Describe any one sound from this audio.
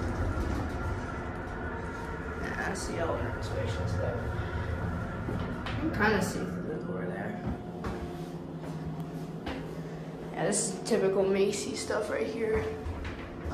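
An elevator car rumbles and hums as it travels.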